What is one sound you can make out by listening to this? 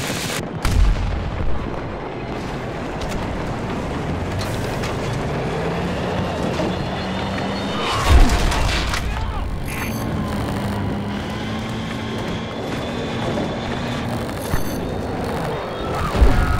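A tank engine rumbles and its tracks clatter as it drives.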